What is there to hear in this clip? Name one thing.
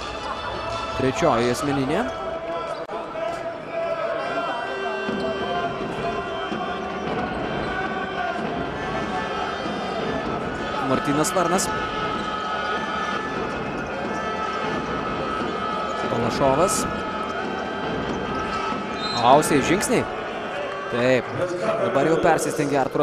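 A crowd murmurs and cheers throughout a large echoing arena.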